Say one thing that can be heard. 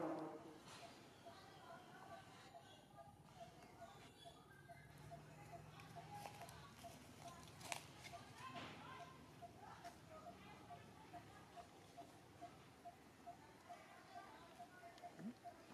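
A baby monkey suckles with soft smacking sounds.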